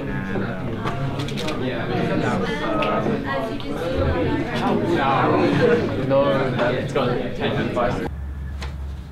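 A group of young men and women chat over one another indoors.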